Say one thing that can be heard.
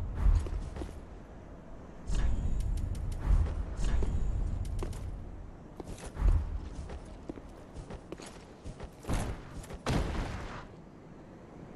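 Armour clanks and footsteps scrape on stone.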